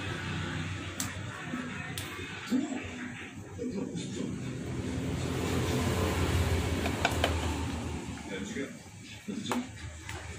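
A plastic blender lid clicks and knocks under a hand.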